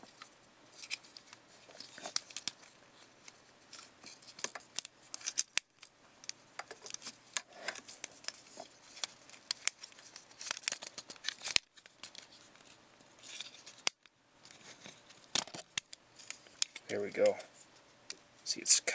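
Plastic parts of a toy click and rattle as hands move them close by.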